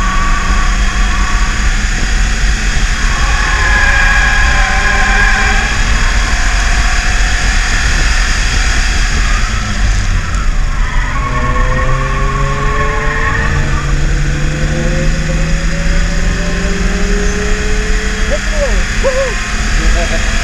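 A car engine roars loudly from inside the cabin, rising and falling in pitch as the car speeds up and slows down.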